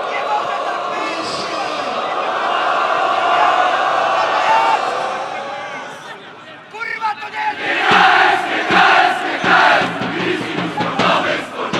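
A large crowd of men and women chants and sings loudly in unison outdoors.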